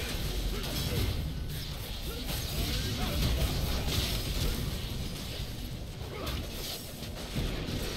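Magic blasts and clashing strikes burst in a busy fight.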